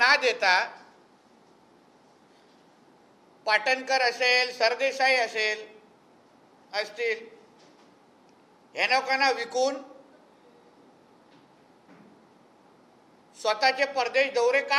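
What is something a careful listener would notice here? A man speaks earnestly into a microphone in short bursts with pauses.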